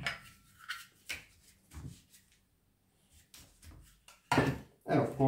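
Plastic vacuum cleaner parts click and knock as they are handled.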